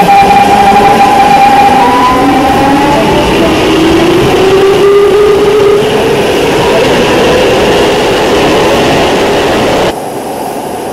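An electric train motor whines and slowly rises in pitch.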